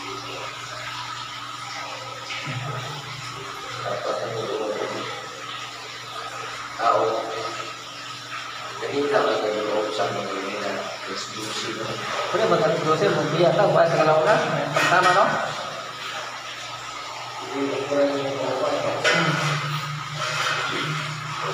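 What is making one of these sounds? A rope rasps as it is hauled hand over hand.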